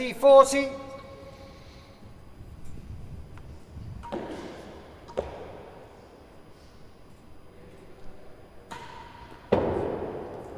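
A racket strikes a ball with sharp cracks.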